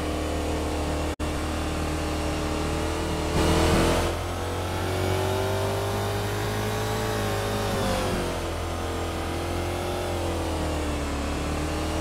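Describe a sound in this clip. A car engine hums and changes pitch as it speeds up and slows down.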